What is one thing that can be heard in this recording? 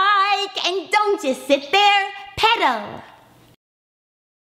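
A middle-aged woman speaks close by in a lively, sing-song voice.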